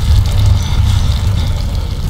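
A fire crackles in a stove.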